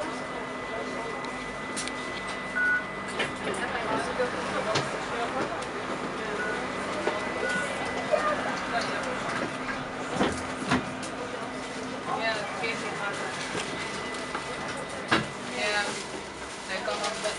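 Several passengers chatter nearby in a busy, enclosed space.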